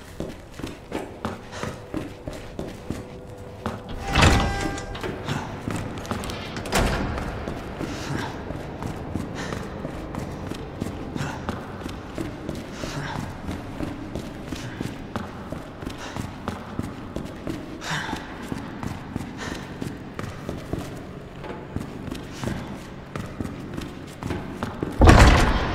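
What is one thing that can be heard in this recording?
Footsteps tread steadily on a hard concrete floor, echoing a little.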